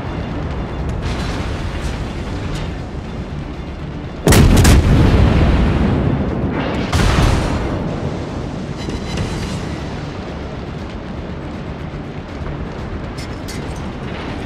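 A ship's engine rumbles low and steadily.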